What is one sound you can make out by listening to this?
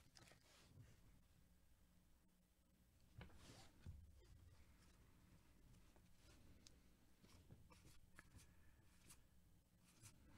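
Cards slide and tap softly against each other as gloved hands shuffle them.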